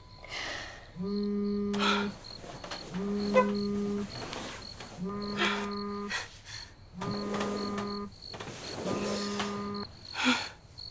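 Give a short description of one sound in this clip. A mobile phone rings with a repeating tone.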